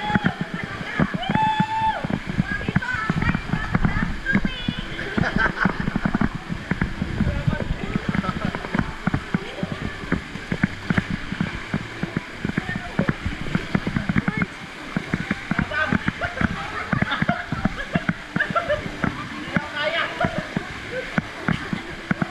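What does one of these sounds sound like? Water splashes and churns loudly around swimmers.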